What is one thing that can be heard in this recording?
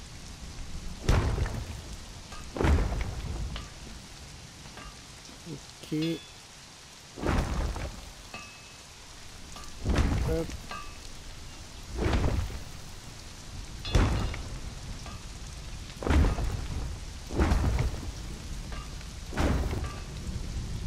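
Heavy building blocks thud into place again and again.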